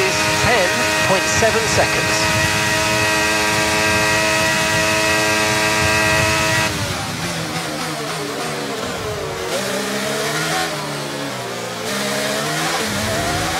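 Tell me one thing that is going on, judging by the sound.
A racing car engine screams at a steady high pitch, then drops and climbs again through the gears.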